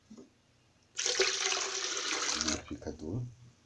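Liquid pours and splashes into a plastic jug.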